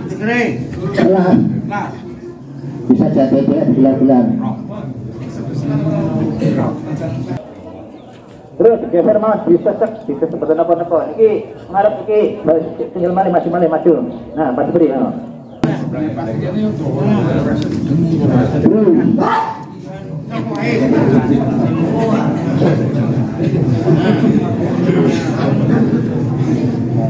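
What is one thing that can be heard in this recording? A crowd of men murmurs and talks close by.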